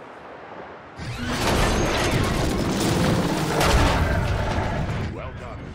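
A heavy crash of smashing stone and metal rumbles loudly.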